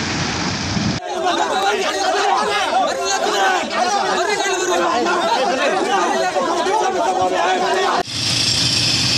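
A crowd of men talk loudly and excitedly at close range outdoors.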